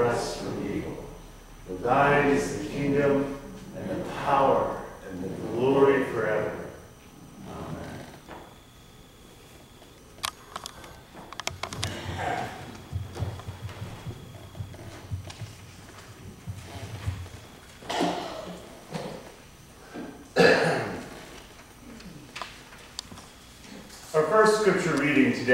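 A middle-aged man speaks with animation in a room with a slight echo.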